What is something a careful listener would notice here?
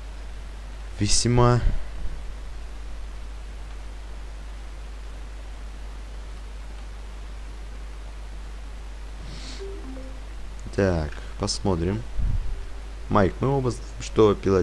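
A young man talks casually into a close microphone.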